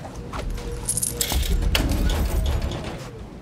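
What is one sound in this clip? A metal chest lid creaks open.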